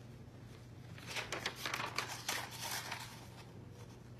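Papers rustle as a man leafs through them.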